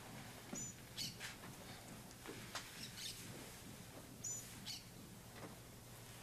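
Cloth rustles softly.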